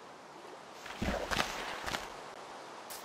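Leaves rustle and crunch as blocks break.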